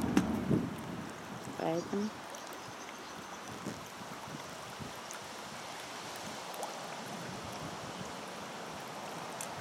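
Small waves lap gently against a stone edge outdoors.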